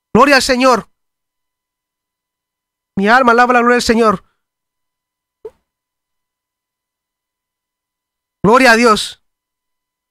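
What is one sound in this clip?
A man speaks with animation into a close microphone in short bursts.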